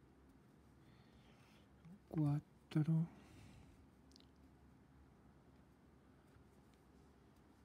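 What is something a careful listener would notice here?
A crochet hook softly rubs and clicks through yarn.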